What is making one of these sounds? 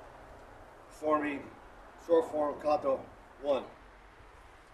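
An older man speaks calmly nearby, outdoors.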